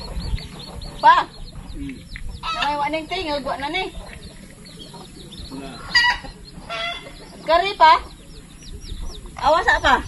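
A hen clucks and squawks close by.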